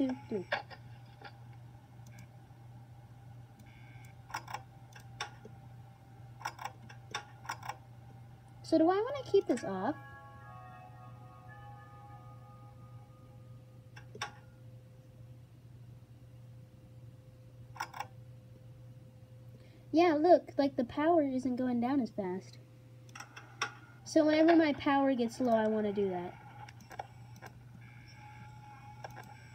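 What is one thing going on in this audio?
Short electronic clicks come from a tablet game.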